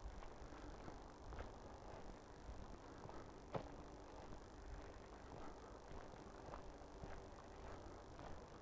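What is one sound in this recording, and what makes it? Footsteps crunch steadily along a dirt path outdoors.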